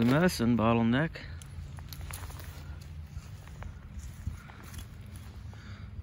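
Footsteps crunch on dry twigs and leaves.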